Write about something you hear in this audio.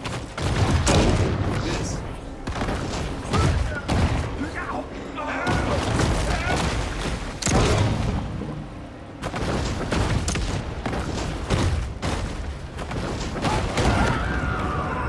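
Heavy crashes and thuds boom again and again.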